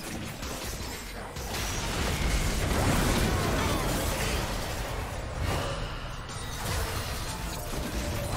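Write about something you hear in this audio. Game weapons clash and hit repeatedly.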